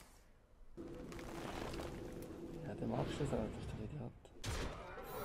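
A bright magical whoosh flares up with a shimmering ring.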